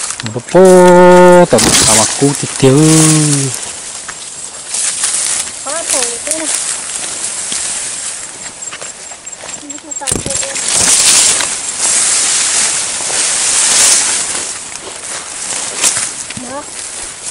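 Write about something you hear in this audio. Leaves and grass stalks rustle and swish as someone pushes through dense plants.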